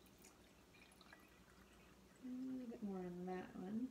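Water pours into a glass.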